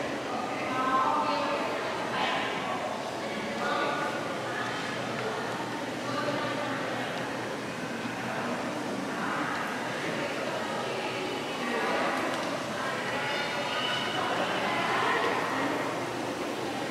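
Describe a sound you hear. Men and women chatter around a large echoing hall.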